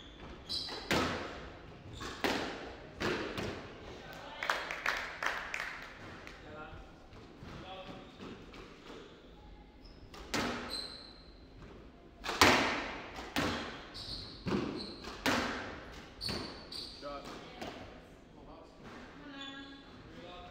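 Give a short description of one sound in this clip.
Shoes squeak sharply on a wooden court floor.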